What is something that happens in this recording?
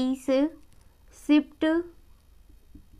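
A young woman speaks clearly nearby.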